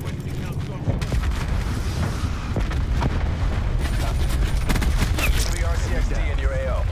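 Rapid gunshots fire at close range.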